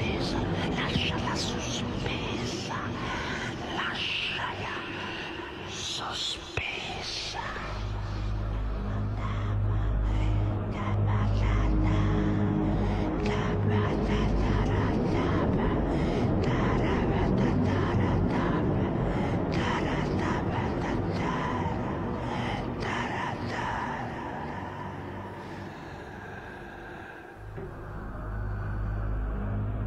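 An older man speaks and intones dramatically, close by.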